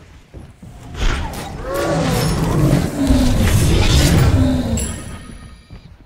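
Magic blasts and weapon hits crackle in quick bursts during a fight.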